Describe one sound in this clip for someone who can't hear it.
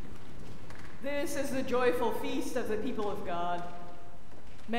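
A middle-aged woman speaks calmly through a microphone in an echoing hall.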